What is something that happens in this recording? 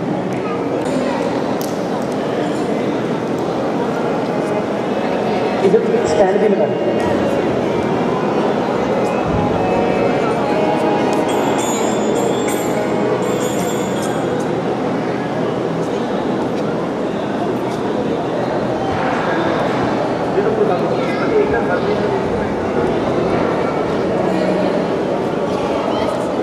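A large group of women sings together.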